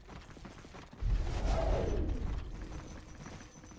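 A magical energy burst whooshes and hums.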